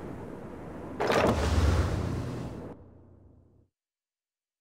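A game character leaps off a rock with a loud rushing whoosh that fades away.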